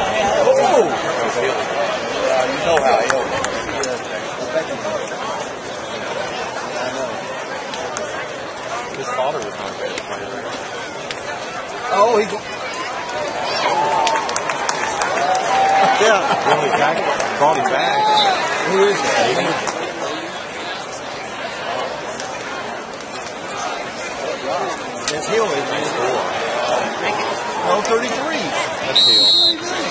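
Several men talk and call out nearby outdoors.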